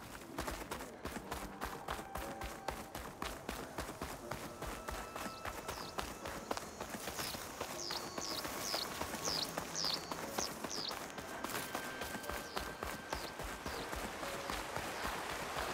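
Quick footsteps run over dirt and leaves.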